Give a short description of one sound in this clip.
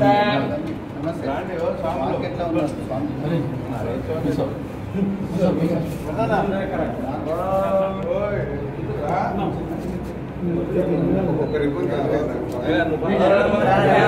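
A crowd of men chatter and call out loudly nearby.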